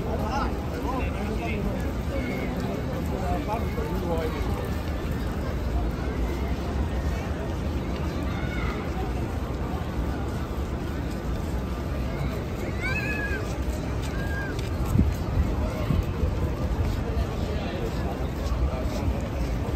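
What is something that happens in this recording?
Footsteps shuffle on a paved plaza.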